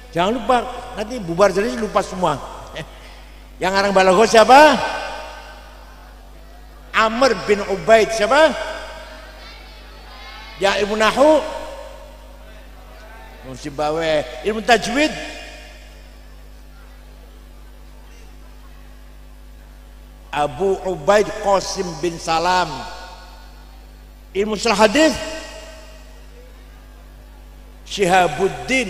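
An elderly man speaks calmly into a microphone, in phrases broken by pauses.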